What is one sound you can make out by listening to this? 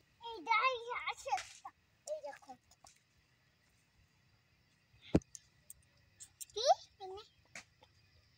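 A young girl speaks up close in a high, lively voice.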